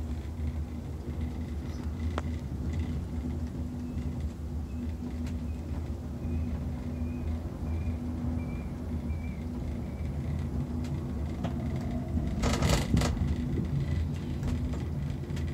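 A cable car cabin hums and rumbles steadily as it glides along its cable.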